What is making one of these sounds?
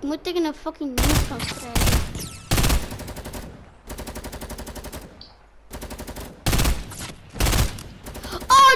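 Loud shotgun blasts boom one after another.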